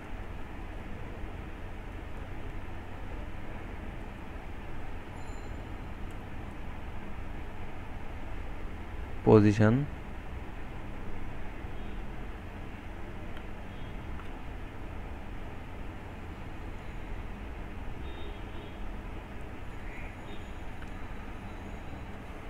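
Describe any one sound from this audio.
Keys click on a computer keyboard.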